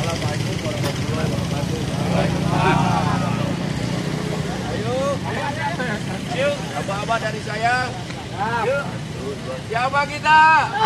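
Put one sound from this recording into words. A group of men talk and call out together outdoors.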